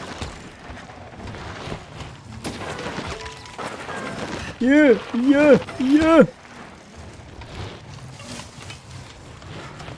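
Bicycle tyres crunch and skid over a dirt trail.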